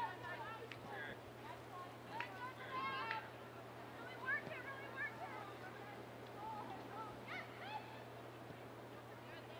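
Young women call out to each other across an open field in the distance.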